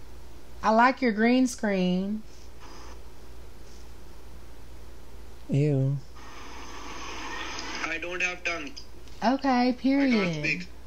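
A young man talks with animation through an online call.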